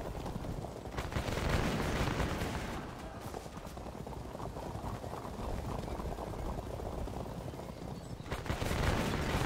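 Muskets fire in a volley.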